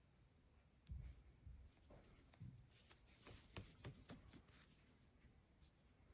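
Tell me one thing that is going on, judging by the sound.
Yarn and a crochet hook rustle and tick softly as hands work close by.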